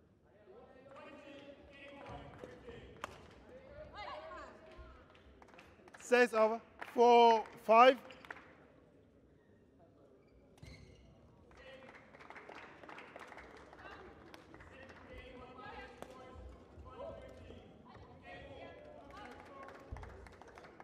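Rackets strike a shuttlecock in a rally, echoing through a large hall.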